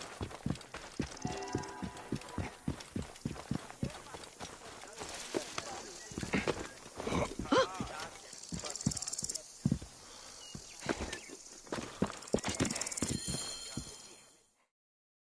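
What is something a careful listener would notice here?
Quick footsteps pad on stone and sand.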